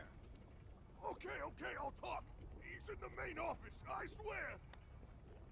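A man pleads in a frightened, shaky voice.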